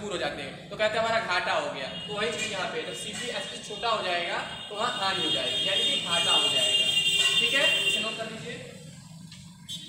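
A young man speaks calmly and explains, close by.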